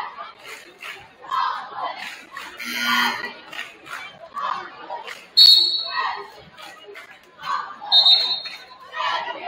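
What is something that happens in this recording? A large crowd chatters in an echoing gym.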